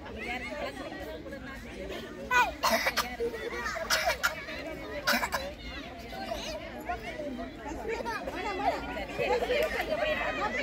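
Children talk and call out nearby outdoors.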